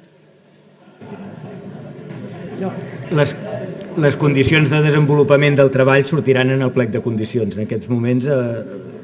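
A man speaks with animation through a microphone, loud and close.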